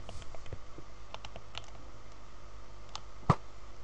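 A bowstring creaks as it is drawn back.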